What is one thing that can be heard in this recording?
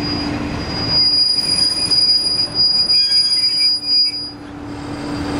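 Train brakes squeal as the railcar stops.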